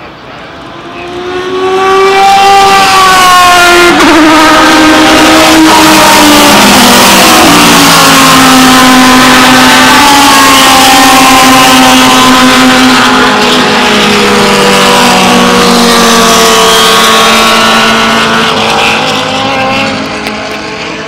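Race car engines roar loudly close by, their pitch rising and falling as they pass.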